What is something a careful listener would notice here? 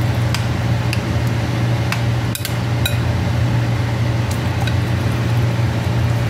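A metal spoon clinks against a glass pot.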